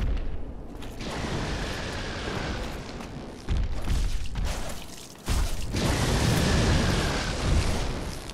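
Lightning crackles and bursts with a heavy rumble.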